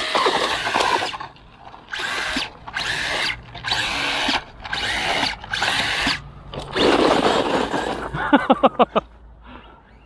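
A small toy car's electric motor whines loudly in short bursts.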